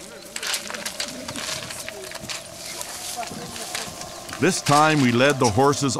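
A horse's hooves clop on stones.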